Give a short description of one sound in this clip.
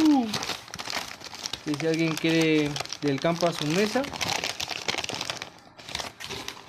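A plastic wrapper crinkles and rustles while it is handled.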